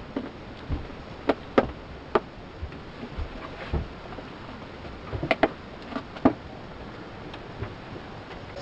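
Small objects knock and clack sharply against a hard surface nearby.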